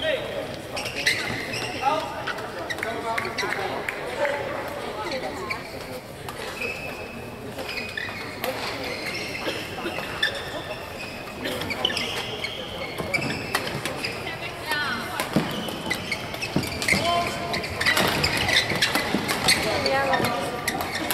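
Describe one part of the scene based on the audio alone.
Rackets strike a shuttlecock in a quick rally.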